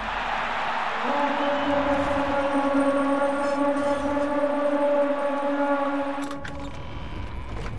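A magic spell hums with a steady ringing tone.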